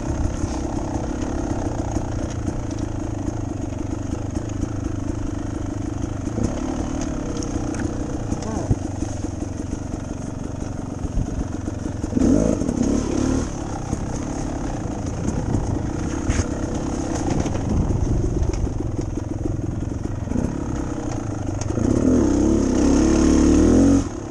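Tyres rumble and bump over a dirt trail.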